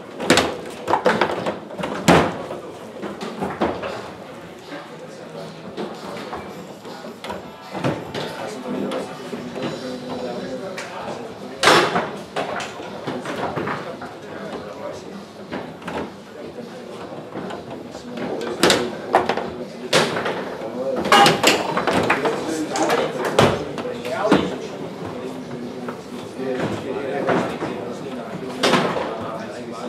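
Foosball rods bang and the ball clacks sharply against the table.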